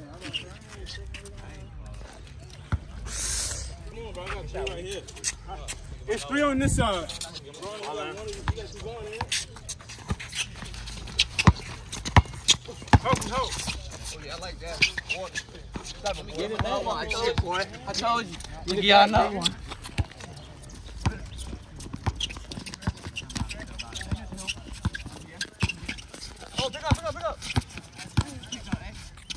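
A basketball bounces sharply on an outdoor court.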